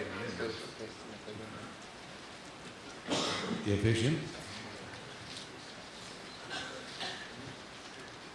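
An elderly man speaks slowly into a microphone, heard through a loudspeaker.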